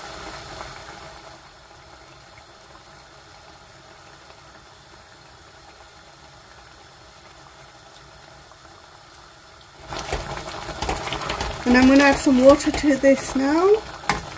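A wooden spatula scrapes and stirs thick sauce in a metal pot.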